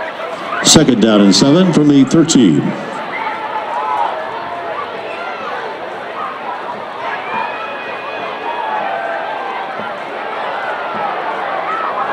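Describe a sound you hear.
A crowd murmurs and cheers outdoors.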